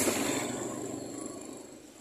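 A motorbike engine hums as it passes.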